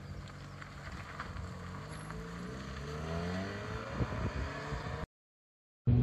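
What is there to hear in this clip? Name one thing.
A car pulls away and its engine rises in pitch as it drives off.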